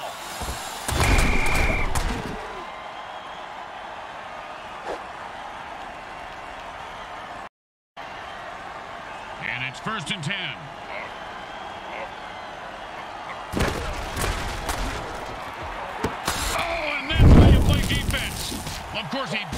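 Armoured players crash together with heavy thuds.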